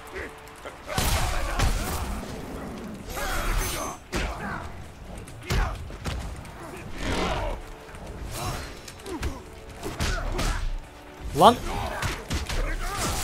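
Punches and kicks thud in a video game fight.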